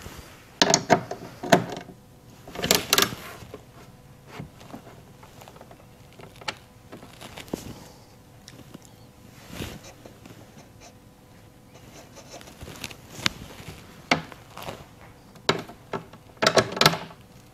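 A small hand tool clicks and knocks against a carbon fibre panel.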